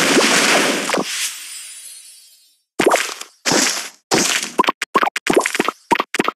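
Bright chiming game sounds ring out in quick bursts.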